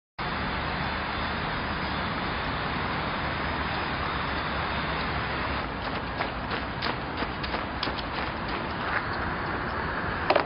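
Many footsteps patter on pavement as a group runs.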